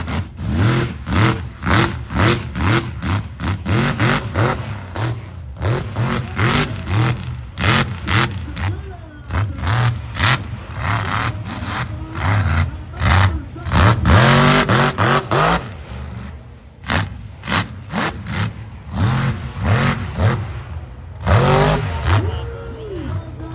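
A monster truck engine roars and revs hard nearby.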